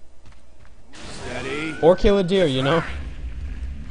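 A crackling bolt of lightning strikes.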